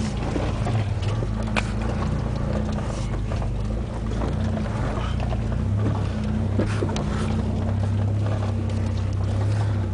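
A vehicle engine rumbles and labours steadily at low speed.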